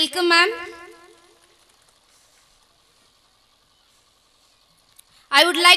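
A young woman speaks with feeling into a microphone, heard through loudspeakers with a long echo.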